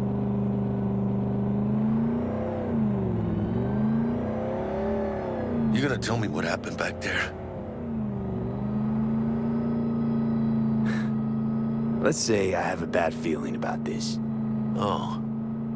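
A truck engine hums steadily, its pitch dipping and rising as it shifts gears.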